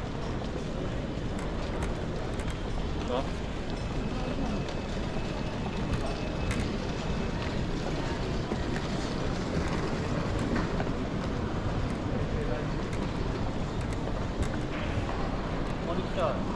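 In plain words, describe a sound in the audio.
A crowd murmurs and echoes through a large hall.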